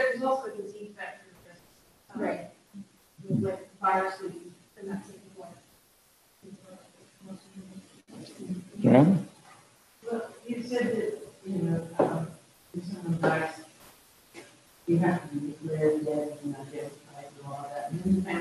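An elderly man speaks calmly, heard from across the room.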